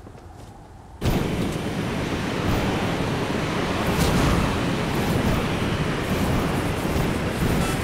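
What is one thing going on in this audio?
A glider whooshes through the air.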